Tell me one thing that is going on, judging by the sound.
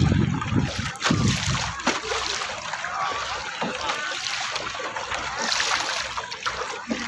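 Water splashes against a small boat.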